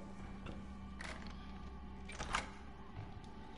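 A metal door latch clicks.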